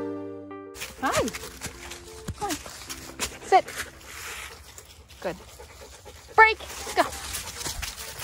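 A dog yelps and whines excitedly, close by.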